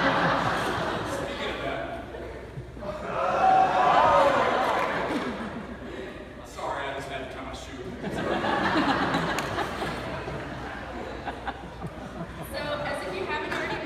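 A young woman speaks into a microphone over loudspeakers in a large echoing hall.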